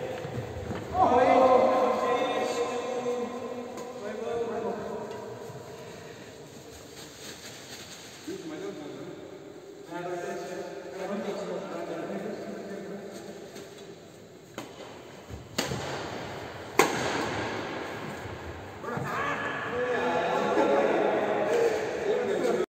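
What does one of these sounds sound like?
Men on a court talk and call out to each other with animation.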